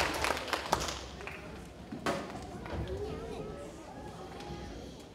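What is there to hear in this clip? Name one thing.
Children chatter softly.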